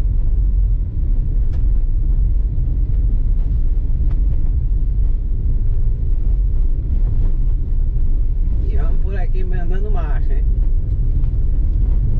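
Tyres crunch and rumble over a rough dirt road.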